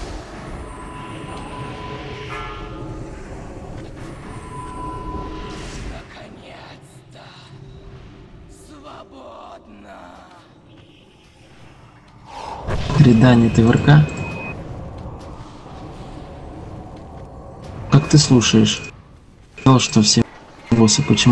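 Spells crackle and whoosh in a fantasy video game battle.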